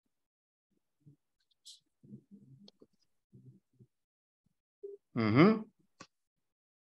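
A young man speaks over an online call, pausing between phrases.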